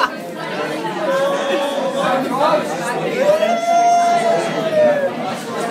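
A young man cheers with long, drawn-out shouts.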